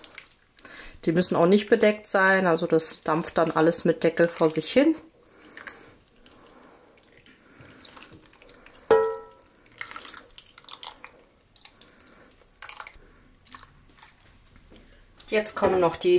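Thick sauce pours and splatters softly into a pot.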